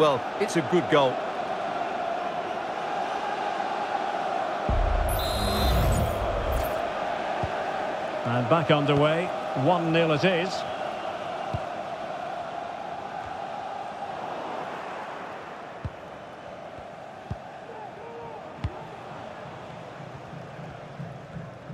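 A large stadium crowd roars and chants steadily, fading somewhat later.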